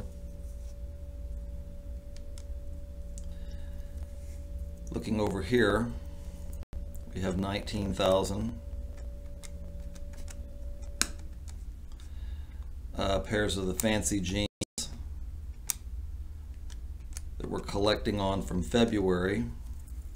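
Calculator keys click softly as they are pressed.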